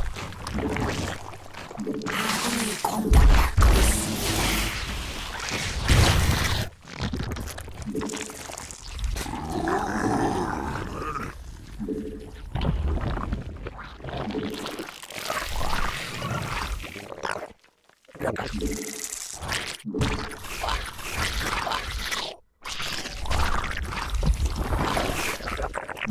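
A young man talks quickly with animation through a microphone.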